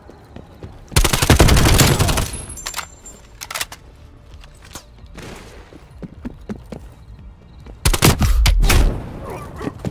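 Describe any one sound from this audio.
A rifle fires rapid bursts of loud gunshots.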